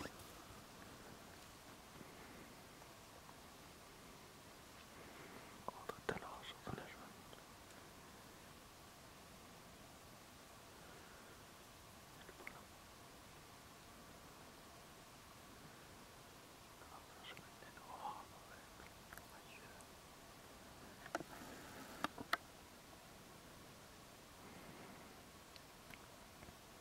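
Water ripples gently past the ice.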